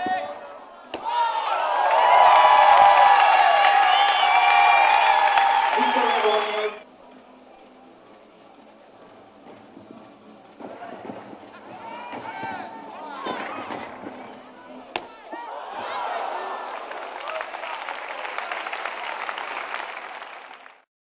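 A crowd cheers and whistles loudly in a large echoing hall.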